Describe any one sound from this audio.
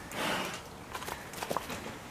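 A bear snuffles and sniffs up close.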